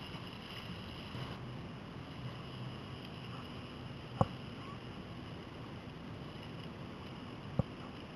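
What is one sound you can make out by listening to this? A sail flaps and rustles in the wind.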